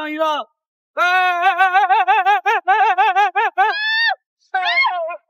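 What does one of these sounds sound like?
A man shouts in alarm close by.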